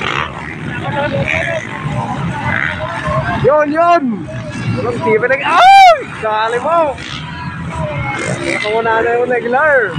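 Dirt bike engines rev and whine loudly, rising and falling.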